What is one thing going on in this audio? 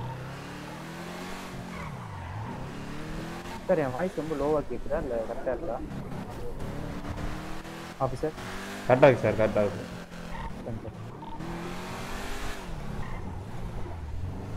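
A car engine revs and changes pitch as the car speeds along.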